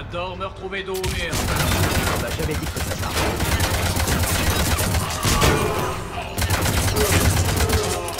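Rapid gunfire rattles and booms in fast bursts.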